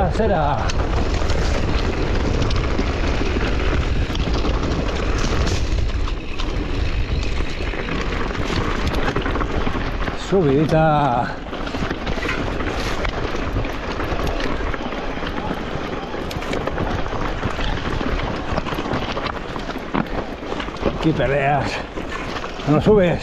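Bicycle tyres crunch and roll over loose rocky ground.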